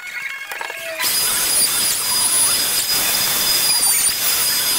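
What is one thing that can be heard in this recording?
A power router whines loudly as it cuts through wood.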